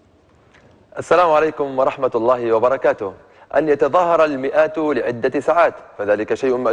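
A young man speaks clearly into a microphone.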